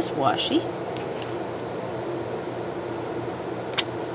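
Sticky tape peels off a roll.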